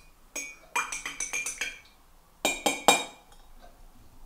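A spoon clinks against a ceramic mug while stirring.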